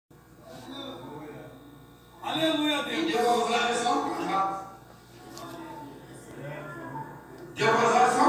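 A man speaks into a microphone, heard through a television loudspeaker in a small room.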